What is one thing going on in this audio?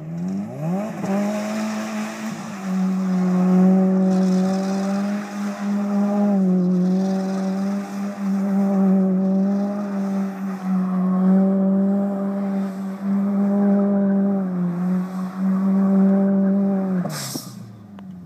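Tyres squeal on the road.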